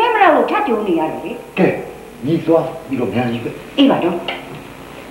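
An elderly man answers in a low voice.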